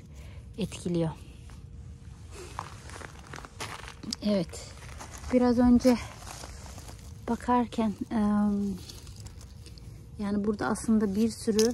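A gloved hand brushes against plant leaves.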